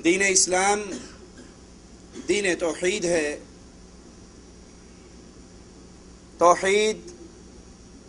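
A man speaks slowly and solemnly into a microphone, in short phrases with pauses.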